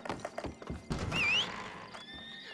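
Swinging saloon doors creak open.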